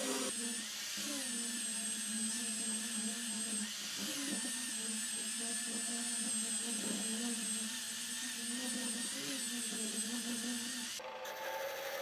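An angle grinder with a sanding disc whines as it sands wood.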